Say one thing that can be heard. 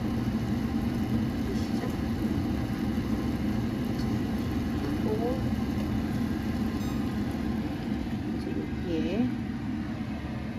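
Liquid boils and bubbles vigorously in a pot.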